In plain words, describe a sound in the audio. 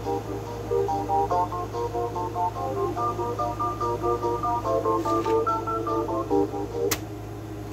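Music plays from a small portable stereo.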